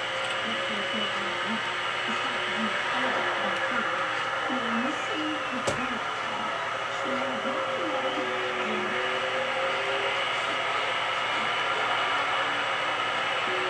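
A racing car's engine roars steadily at high speed.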